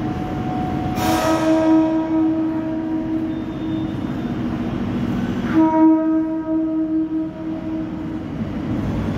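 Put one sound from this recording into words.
A train horn sounds loudly twice under a large echoing roof.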